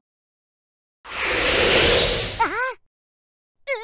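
A whoosh sweeps past as a small cartoon creature flutters.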